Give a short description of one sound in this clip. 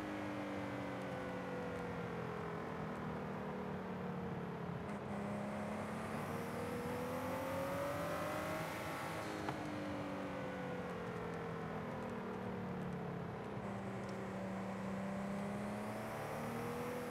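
A sports car engine roars steadily, rising and falling in pitch as it shifts gears.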